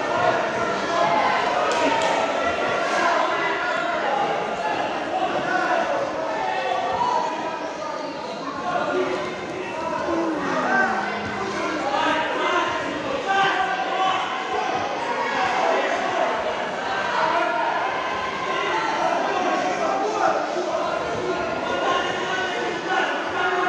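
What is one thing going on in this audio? Fighters' feet thud and shuffle on padded mats.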